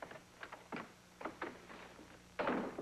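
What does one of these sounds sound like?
A knock sounds on a wooden door.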